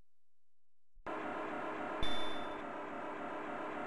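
A game's engine hum drones steadily.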